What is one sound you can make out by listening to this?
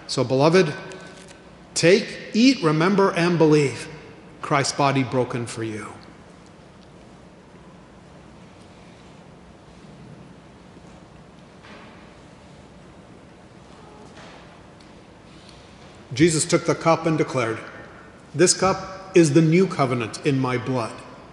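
A middle-aged man speaks calmly into a microphone, heard through a loudspeaker in a large echoing hall.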